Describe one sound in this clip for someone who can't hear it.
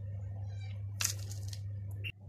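A spoon clinks against plastic cups.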